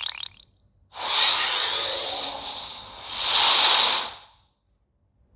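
A magical whoosh swells into a roar.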